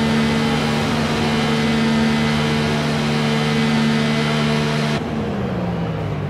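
A racing car engine idles with a steady, buzzing hum.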